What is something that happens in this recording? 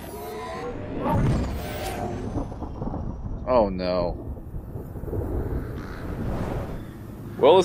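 A loud explosion booms and rumbles.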